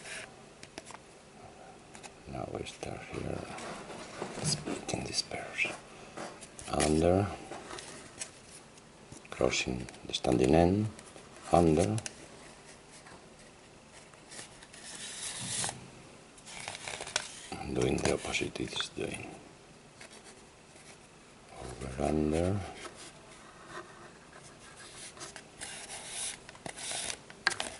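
A cord rubs and rustles against a cardboard tube.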